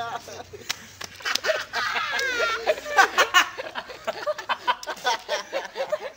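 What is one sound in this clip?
Young men laugh loudly close by.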